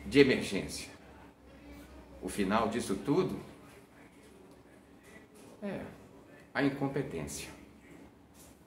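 An elderly man speaks calmly close to a microphone, his voice slightly muffled.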